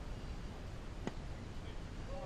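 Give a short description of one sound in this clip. A bat cracks against a ball.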